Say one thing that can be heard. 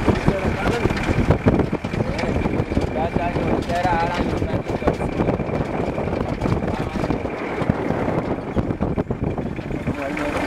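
A vehicle rumbles and rattles steadily as it drives along a bumpy road.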